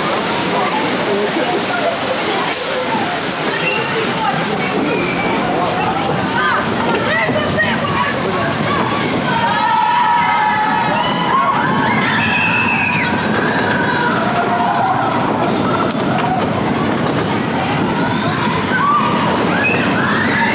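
Riders scream and shout with excitement.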